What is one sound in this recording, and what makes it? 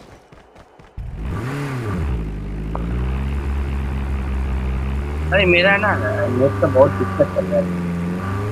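A vehicle engine hums steadily and revs as it drives.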